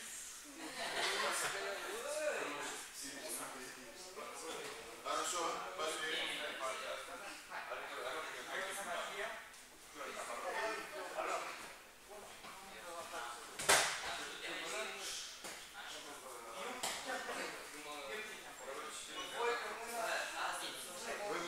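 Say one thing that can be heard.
A man talks with animation in an echoing hall.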